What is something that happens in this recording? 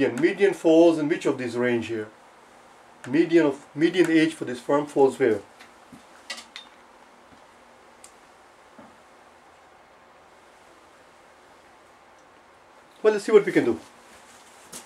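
A man explains calmly, close to a microphone, with long pauses.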